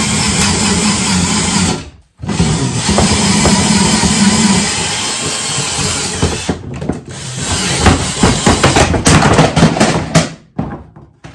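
A power drill whirs loudly in bursts.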